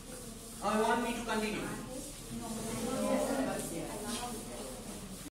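A man speaks steadily in a slightly echoing room.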